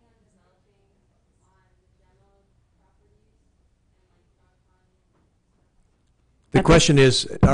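Faint voices murmur in a room.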